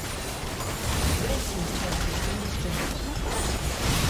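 A tower shatters with a crash.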